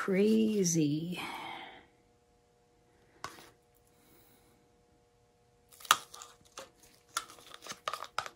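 A thin stick dabs and taps into wet paint.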